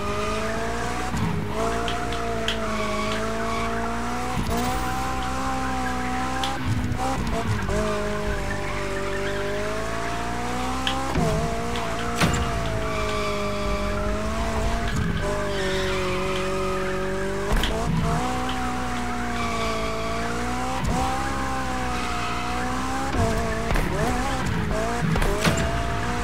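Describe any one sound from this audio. A car engine roars steadily, its pitch rising and falling as it shifts gears.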